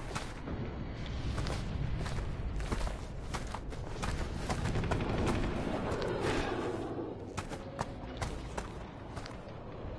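Footsteps crunch on rubble outdoors.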